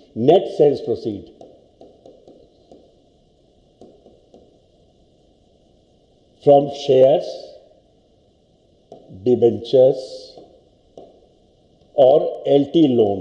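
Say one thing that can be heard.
An elderly man speaks calmly in short bursts, close by.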